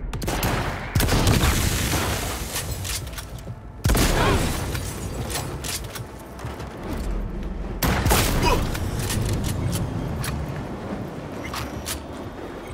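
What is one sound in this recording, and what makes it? Guns fire in sharp, loud bursts.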